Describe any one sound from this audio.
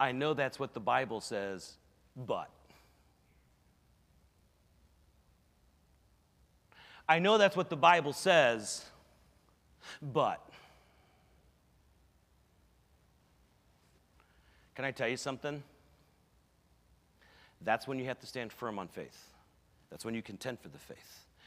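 A man speaks with animation through a microphone, in bursts with pauses, in a large echoing hall.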